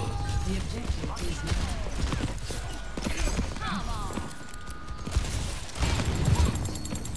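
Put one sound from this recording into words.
A lever-action rifle fires in rapid bursts.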